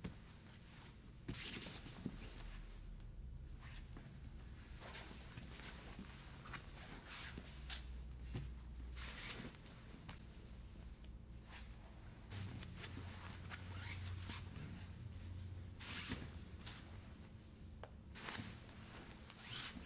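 Bodies scuff and thump against a padded mat.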